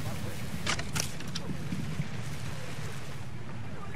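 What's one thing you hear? A bow is drawn and an arrow whooshes away.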